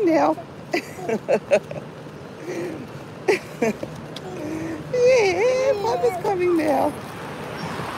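A baby giggles and babbles close by.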